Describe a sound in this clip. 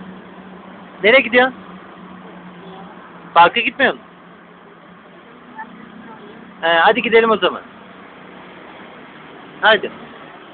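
A small child talks in short, high bursts close by.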